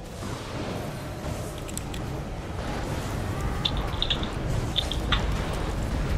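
Magic blasts and explosions crackle and rumble in a fight.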